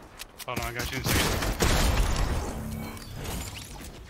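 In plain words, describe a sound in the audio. Rapid gunfire bursts out.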